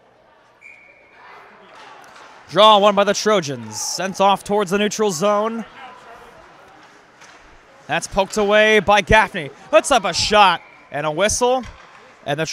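Skates scrape and swish across the ice.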